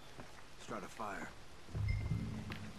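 A man climbs a creaking wooden ladder.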